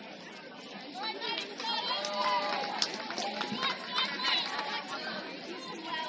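Young women cheer loudly together.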